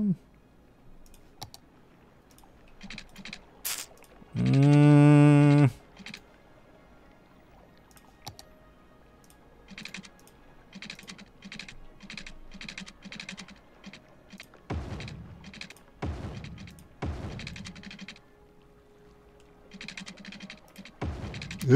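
Soft game clicks sound as paths are placed.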